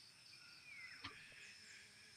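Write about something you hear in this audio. A golf club strikes a ball with a sharp smack.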